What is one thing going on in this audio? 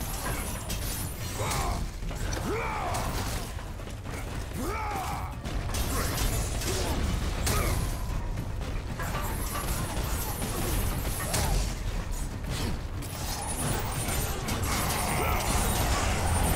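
Chained blades whoosh and slash through the air.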